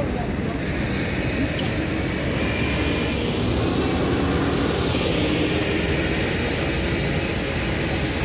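A fire truck engine hums nearby.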